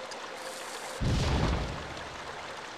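A loud crash bursts out, then quickly fades.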